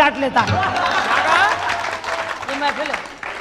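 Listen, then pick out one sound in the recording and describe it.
A crowd laughs and cheers.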